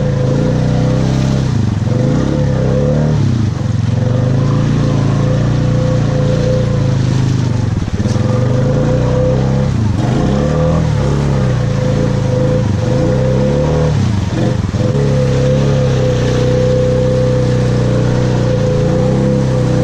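Water splashes and sloshes under the vehicle's wheels.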